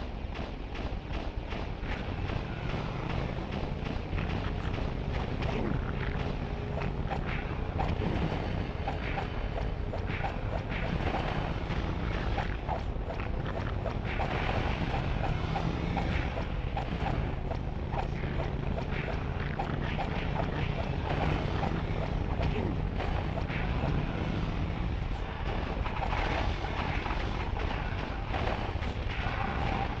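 A motorcycle engine roars steadily.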